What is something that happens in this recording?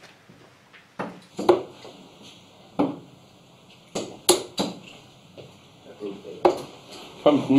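Darts thud sharply into a board.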